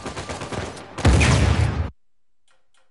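A loud explosion booms with roaring fire.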